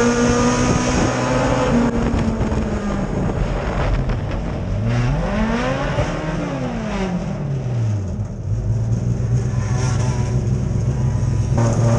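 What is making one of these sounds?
A race car engine roars loudly from close by, its pitch rising and falling as it revs.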